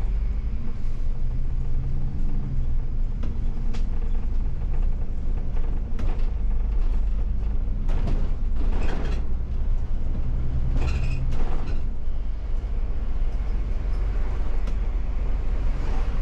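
The bus interior rattles and clatters over the road.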